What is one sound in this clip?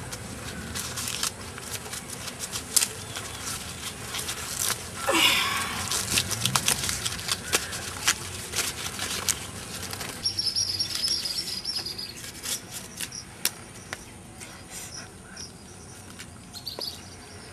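Fibrous plant stalk rips and crackles as a young man peels it by hand.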